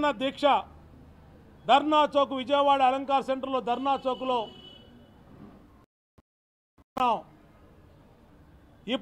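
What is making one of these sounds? A man speaks forcefully into a nearby microphone, in short bursts with pauses.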